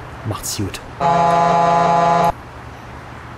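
A truck's air horn blares loudly for about a second.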